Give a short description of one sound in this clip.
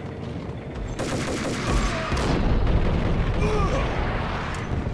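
Gunshots ring out loudly.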